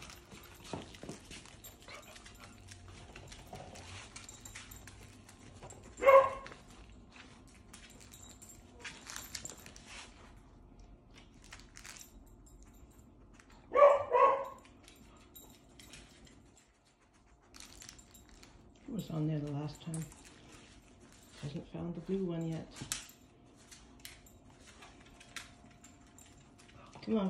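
A dog's claws click and patter on a hard floor.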